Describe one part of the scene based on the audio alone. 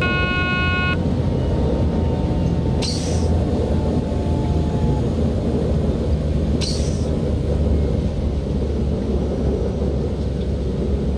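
A train rumbles steadily along the track, heard from inside the cab.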